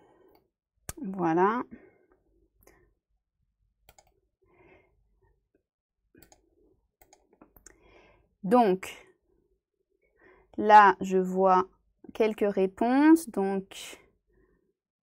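A young woman speaks calmly in short phrases into a close microphone, with long pauses.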